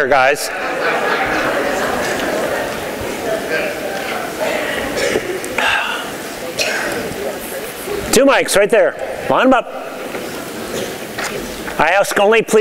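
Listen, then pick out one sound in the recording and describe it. An audience murmurs in a large room.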